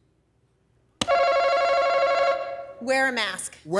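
An electronic buzzer sounds loudly and steadily.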